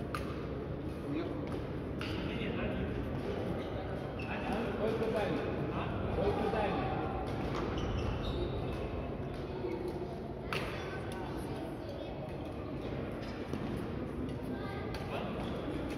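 Shuttlecocks are hit with rackets, ringing out in a large echoing hall.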